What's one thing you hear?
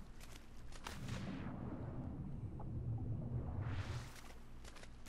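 Water rumbles dully from under the surface.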